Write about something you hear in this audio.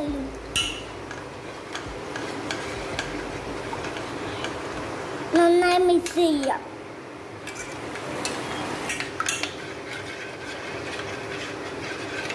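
A spoon stirs and scrapes against the inside of a metal pot.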